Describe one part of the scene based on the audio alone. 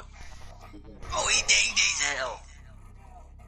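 A man cries out in panic.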